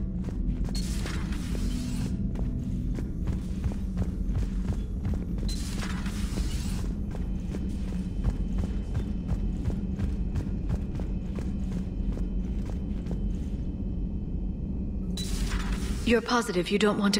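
A heavy door slides open with a short whoosh.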